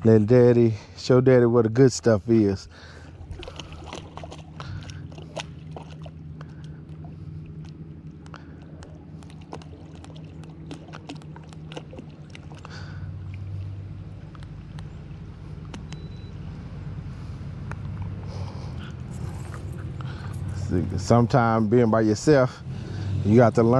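Small waves lap gently against a boat's hull.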